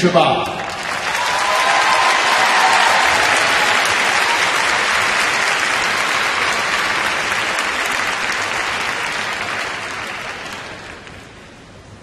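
A large crowd applauds loudly in a big echoing arena.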